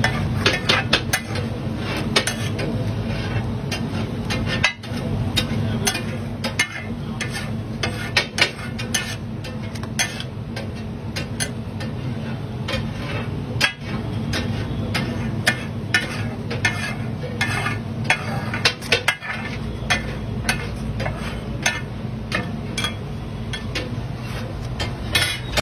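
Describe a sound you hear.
A metal spatula scrapes and clatters on a hot griddle.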